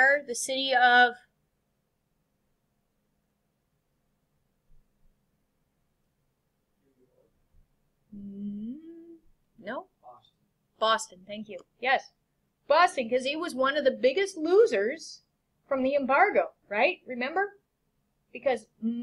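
A woman speaks calmly through a computer microphone, pausing between phrases.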